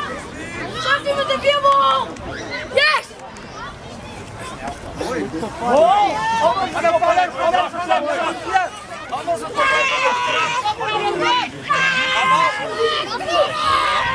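A man calls out loudly to young players.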